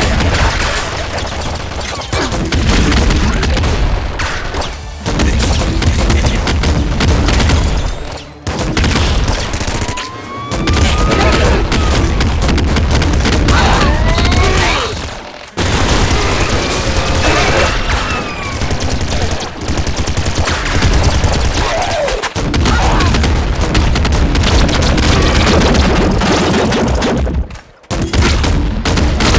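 Rapid gunfire and explosions crackle and boom in a video game.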